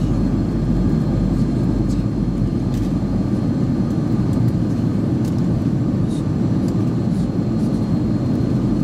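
Jet engines roar steadily inside a plane cabin.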